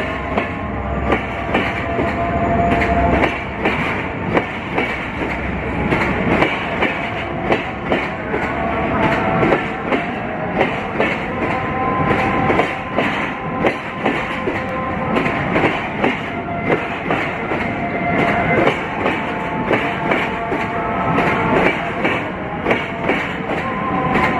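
A freight train rumbles steadily along the tracks.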